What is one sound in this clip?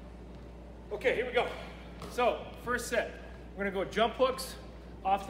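A man talks calmly, close by, in an echoing hall.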